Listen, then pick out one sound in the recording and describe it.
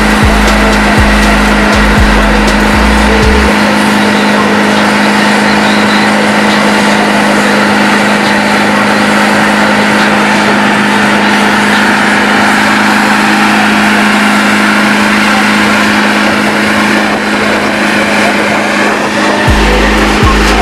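A truck engine roars loudly and steadily during a burnout.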